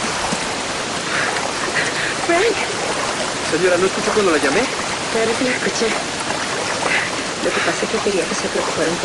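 A young man talks with animation.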